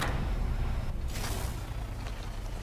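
A heavy door slides open with a rushing whoosh.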